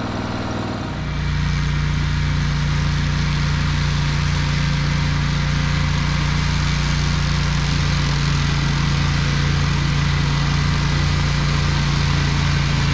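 A riding mower engine hums steadily in the distance.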